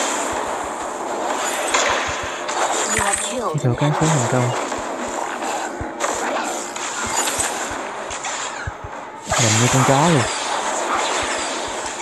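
Spell effects and weapon clashes crackle and whoosh in quick bursts.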